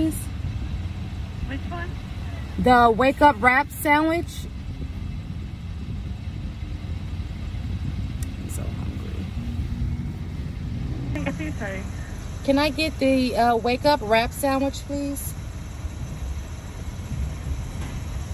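A car engine idles with a low, steady hum.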